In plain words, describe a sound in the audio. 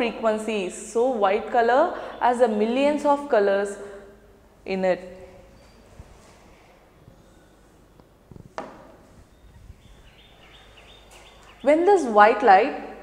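A woman speaks calmly and clearly into a clip-on microphone, explaining.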